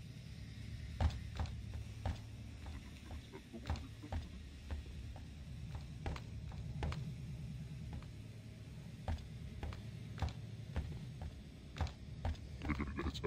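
Footsteps thud on a metal floor at a running pace.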